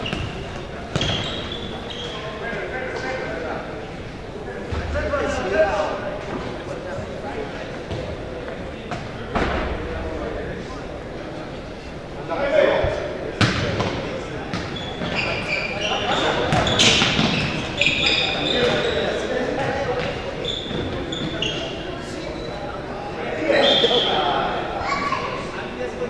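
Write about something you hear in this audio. A ball thumps off shoes and the floor.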